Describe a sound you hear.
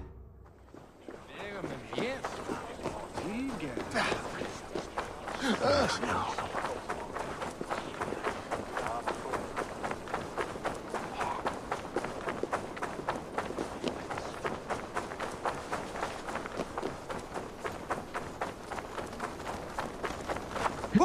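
Quick footsteps run over stone paving.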